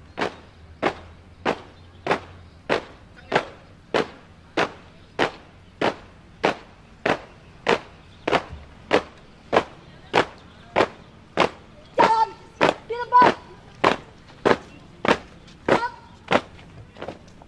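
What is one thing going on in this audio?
Many feet stamp in unison on pavement in a steady, even marching rhythm.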